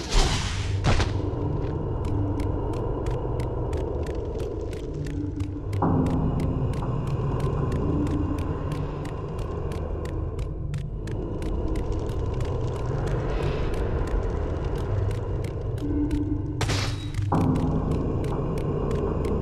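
Footsteps slap quickly on stone.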